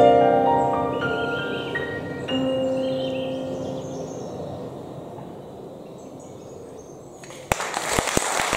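An electric keyboard plays a fast run of notes that rings out and fades.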